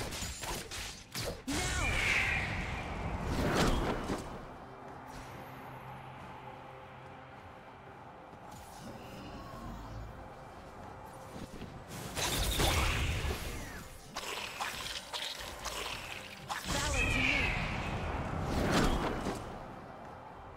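Magic spell effects whoosh and crackle in short bursts.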